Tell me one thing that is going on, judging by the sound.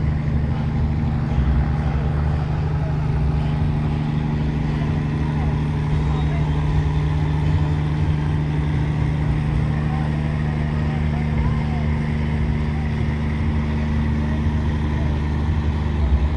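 A crowd of men, women and children chatters outdoors nearby.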